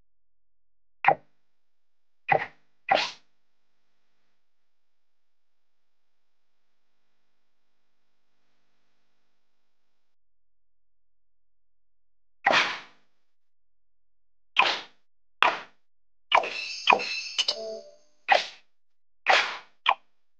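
Short game menu sounds click and chime as options are tapped.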